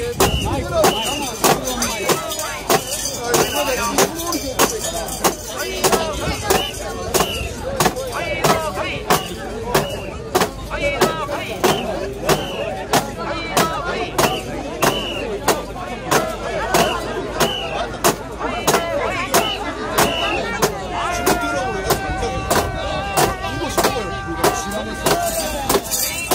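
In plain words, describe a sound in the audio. A large crowd of men chants loudly and rhythmically outdoors.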